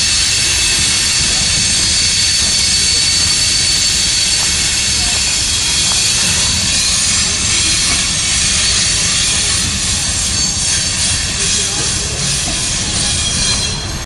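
A freight train rolls past close by, its wheels clattering and squealing on the rails.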